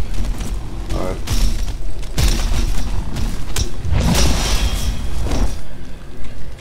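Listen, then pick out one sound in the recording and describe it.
A large creature growls and roars deeply.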